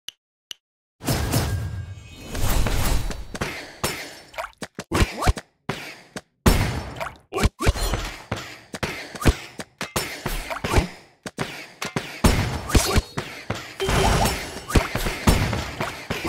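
Game battle effects clash and burst in rapid succession.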